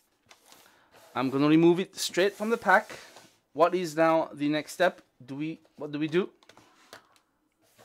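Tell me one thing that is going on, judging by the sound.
Hands shuffle and tap a cardboard box.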